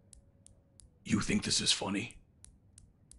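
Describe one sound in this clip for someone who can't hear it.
A man speaks gruffly and angrily.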